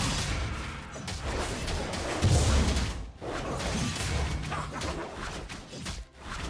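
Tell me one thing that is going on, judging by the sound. Video game spell effects and weapon hits clash rapidly in a fight.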